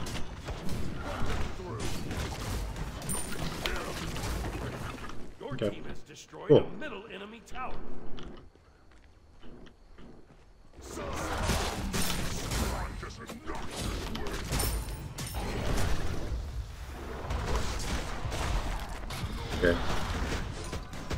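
Fighting sounds from a video game clash and crash.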